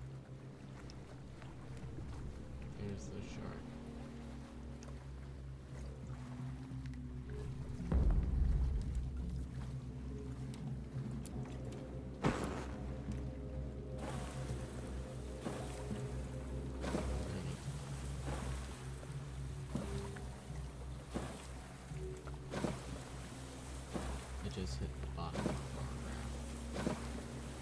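Waves lap against a rubber raft.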